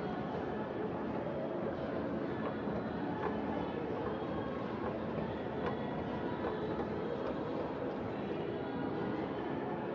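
Distant voices murmur in a large echoing hall.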